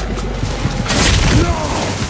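A burst of flames roars.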